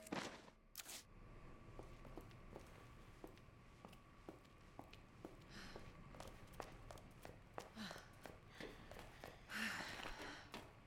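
Footsteps tap on a hard floor at a steady pace.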